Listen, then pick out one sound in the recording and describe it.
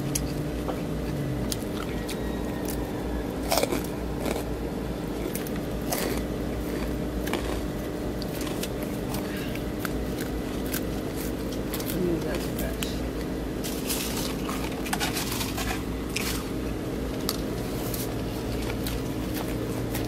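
A plastic fork scrapes and clicks against a plastic salad bowl.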